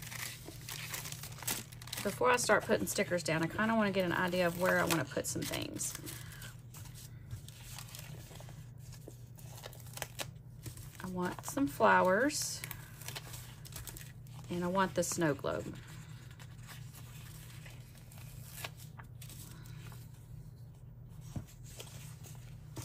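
Paper sheets rustle and crinkle close by.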